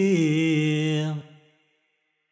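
A group of women sing together outdoors.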